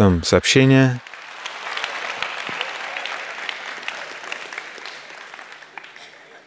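An audience laughs and applauds in a large hall.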